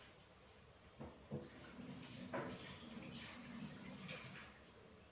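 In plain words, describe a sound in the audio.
Dishes clatter at a sink.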